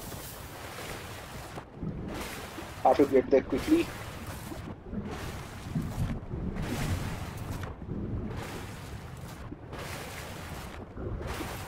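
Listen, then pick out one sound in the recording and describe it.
Water splashes and swishes as a swimmer paddles along.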